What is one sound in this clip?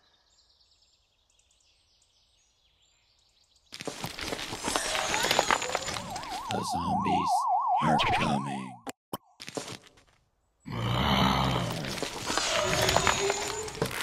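Cartoonish game sound effects pop and chime.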